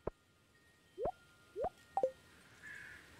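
Short game menu pops and clicks sound as a menu closes.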